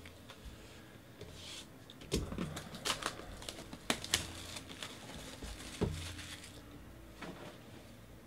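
A cardboard box is handled and knocks lightly.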